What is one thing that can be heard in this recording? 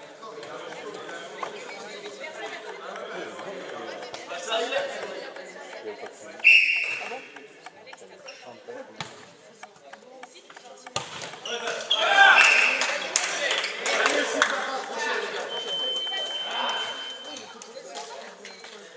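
Players' shouts and chatter echo through a large hall.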